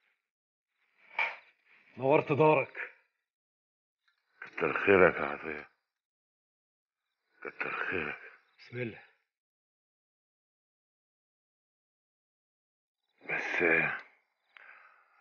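A man speaks softly in short phrases, close by.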